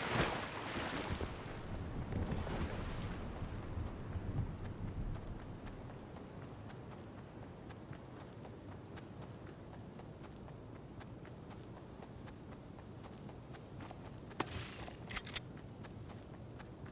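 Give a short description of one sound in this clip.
Footsteps patter quickly through grass.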